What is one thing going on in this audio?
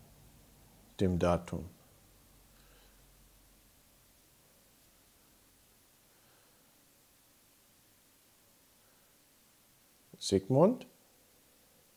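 A man speaks briefly into a microphone in short bursts.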